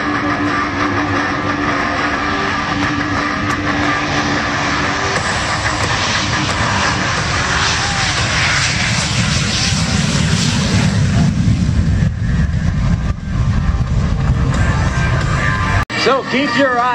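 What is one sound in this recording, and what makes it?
A jet engine roars loudly as a fighter jet takes off and climbs away.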